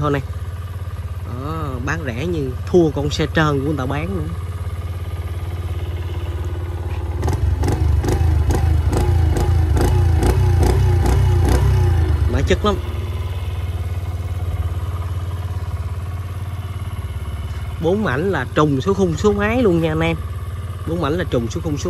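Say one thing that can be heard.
A motorcycle engine idles with a low, steady rumble.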